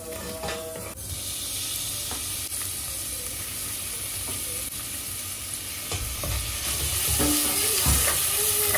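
Meat sizzles loudly in a hot pan.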